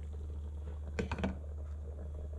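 A glass lid clinks onto a metal pot.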